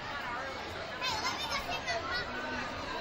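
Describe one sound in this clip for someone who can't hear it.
Children shout and squeal excitedly.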